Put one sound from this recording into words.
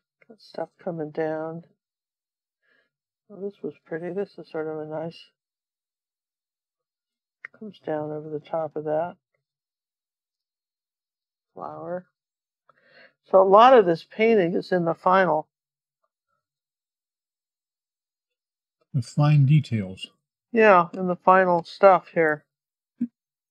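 An elderly woman talks calmly into a nearby microphone, in short bursts with pauses.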